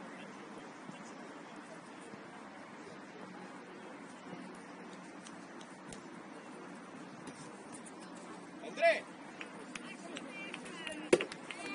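Young players shout to each other in the distance across an open field.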